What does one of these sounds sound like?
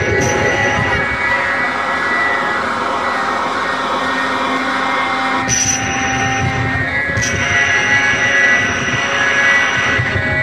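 A crowd of people chatters on a busy street outdoors.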